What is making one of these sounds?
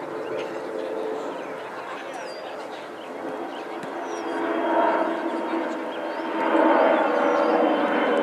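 Teenage boys shout to each other outdoors in the open.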